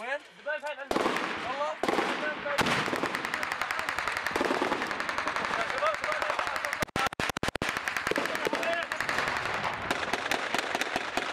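Rapid gunfire crackles close by in dense bursts.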